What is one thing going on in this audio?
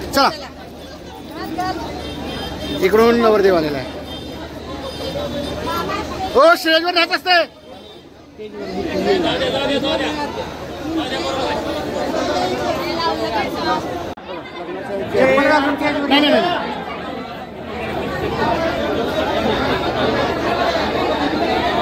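A crowd of men and women chatter loudly nearby.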